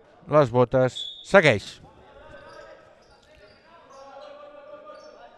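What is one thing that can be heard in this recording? Sneakers squeak on a wooden court in an echoing hall.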